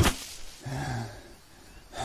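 Large leaves rustle as they are gathered.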